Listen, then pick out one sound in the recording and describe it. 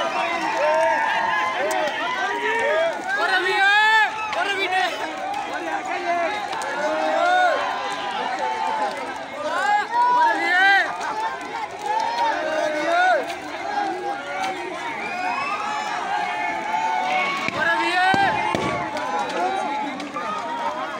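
A crowd of young people shout and chatter excitedly outdoors.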